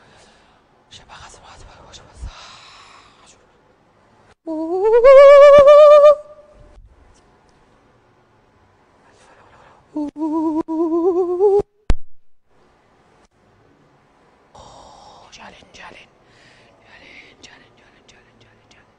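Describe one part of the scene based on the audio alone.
A woman speaks dramatically through a microphone.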